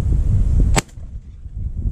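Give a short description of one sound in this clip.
A shotgun fires a single loud, sharp blast close by.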